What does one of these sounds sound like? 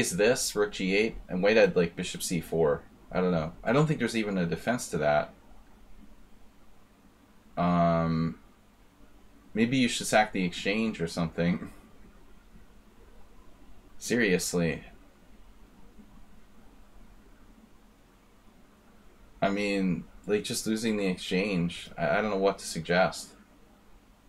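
A middle-aged man talks calmly into a microphone, in short bursts with pauses.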